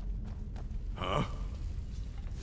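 A man grunts a short question.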